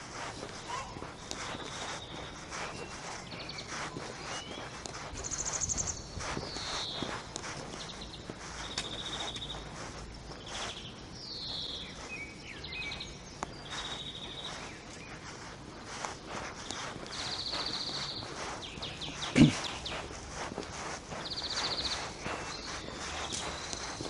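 Footsteps crunch on cobblestones at a steady walking pace.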